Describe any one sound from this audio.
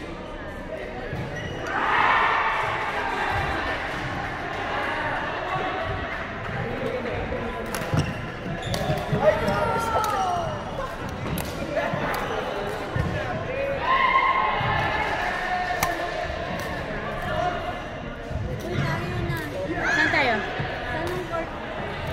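Rackets hit a shuttlecock with sharp pops.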